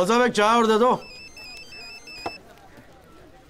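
A mobile phone beeps in a quick series of tones.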